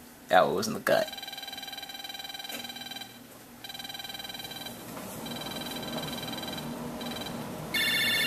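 A video game plays rapid, chattering electronic beeps.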